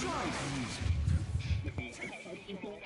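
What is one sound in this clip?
A blast of sand whooshes and rumbles with a deep roar.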